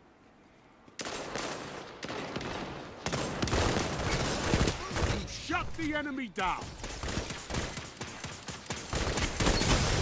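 Gunfire cracks rapidly in a video game.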